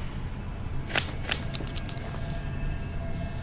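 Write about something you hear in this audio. Scissors snip sharply several times.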